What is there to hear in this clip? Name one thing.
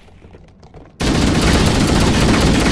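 A rifle fires a loud rapid burst.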